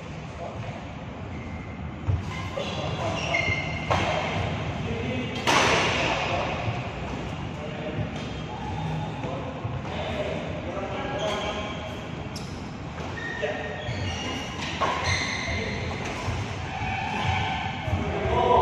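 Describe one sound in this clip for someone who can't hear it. Men talk and call out across an echoing hall.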